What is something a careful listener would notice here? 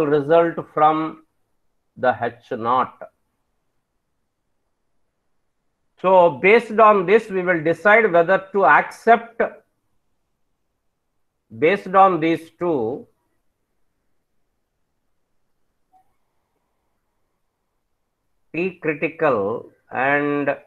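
A man speaks calmly through a microphone, explaining in short bursts with pauses.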